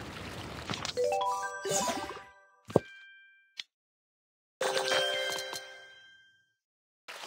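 A bright game chime rings out in a quick rising run of notes.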